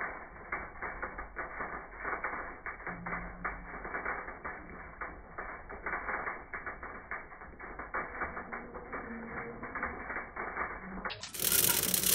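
Seed metering wheels of a planter rattle and clatter steadily.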